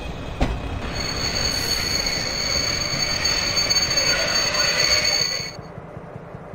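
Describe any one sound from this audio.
Train brakes squeal with a steady high whine as the train slows.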